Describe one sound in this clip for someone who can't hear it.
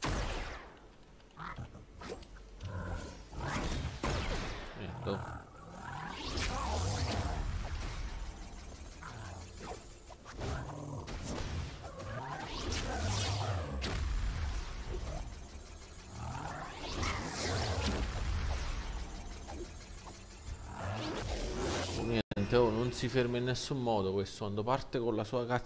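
Video game attacks zap and blast in quick bursts.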